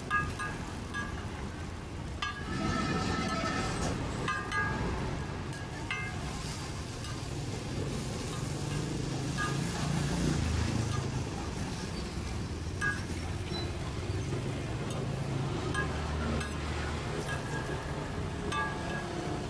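A metal spatula scrapes and taps on a hot griddle.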